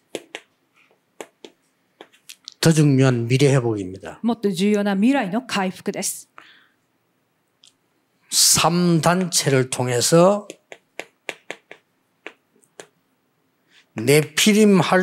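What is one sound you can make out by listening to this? Chalk taps and scrapes on a board in short bursts.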